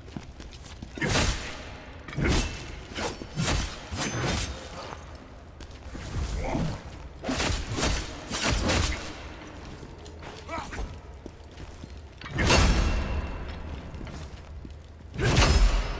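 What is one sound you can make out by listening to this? Heavy blows thud and crash.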